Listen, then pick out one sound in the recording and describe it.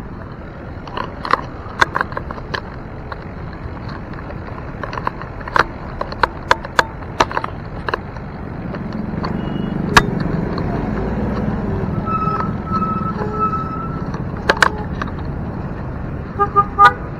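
A bicycle rattles and clicks sharply over bumps.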